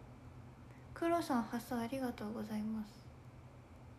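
A young woman speaks briefly and softly, close to the microphone.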